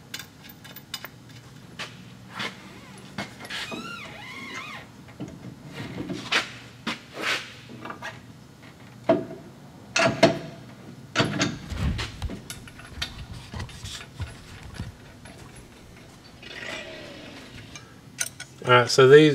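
Metal parts clink and clank.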